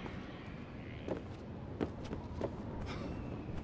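Hands and feet clatter on a wooden ladder.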